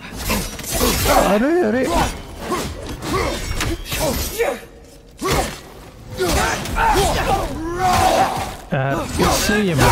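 Heavy weapons strike and clang in a fight.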